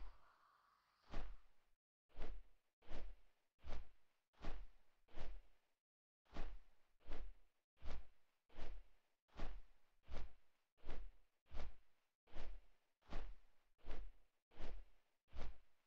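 Large wings flap in slow, steady beats.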